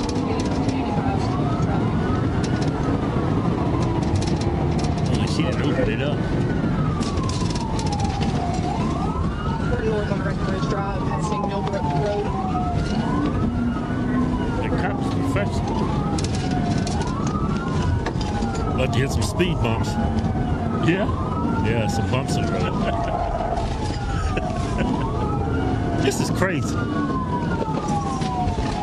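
A siren wails up and down without pause.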